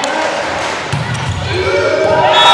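A volleyball is struck hard on a serve.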